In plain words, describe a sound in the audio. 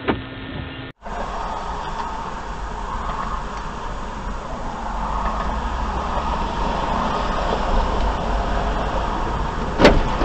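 Car traffic rumbles along a wet road.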